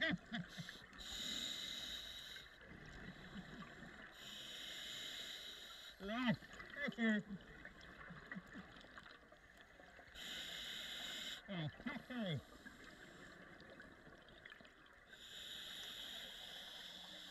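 A diver breathes out through a regulator in bursts of rushing, bubbling noise.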